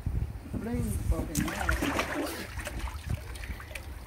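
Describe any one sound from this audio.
Water splashes as a child lands in a paddling pool.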